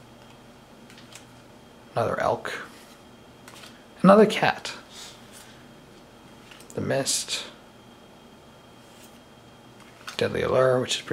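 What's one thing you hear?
Playing cards slide softly against each other as they are shuffled through by hand.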